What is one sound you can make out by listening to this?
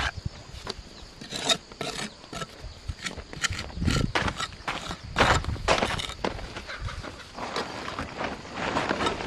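A metal trowel scrapes and taps against wet mortar and brick.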